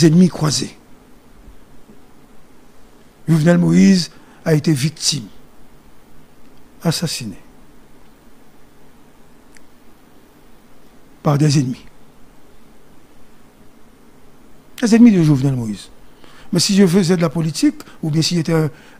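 A man speaks slowly into a close microphone, with long pauses.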